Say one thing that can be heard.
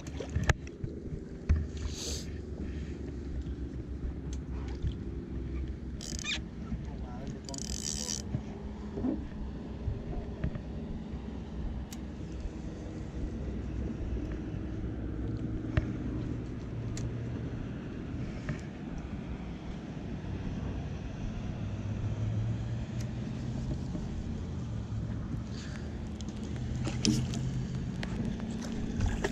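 Wind rumbles steadily outdoors on open water.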